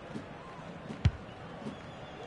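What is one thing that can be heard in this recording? A ball is kicked with a dull thump.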